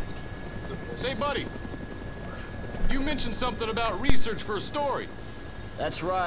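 A man speaks calmly through a headset radio.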